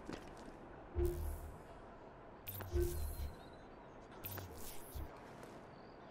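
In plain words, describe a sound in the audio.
Heavy landings thud on roof tiles.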